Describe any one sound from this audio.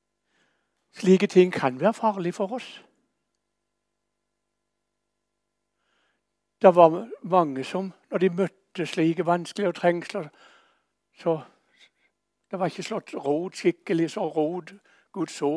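An elderly man reads aloud calmly, heard close through a microphone.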